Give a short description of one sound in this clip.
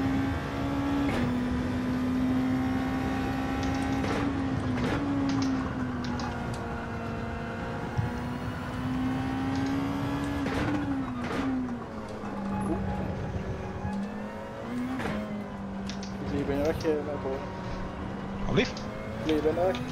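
A racing car engine roars steadily, dropping in pitch as it shifts gears.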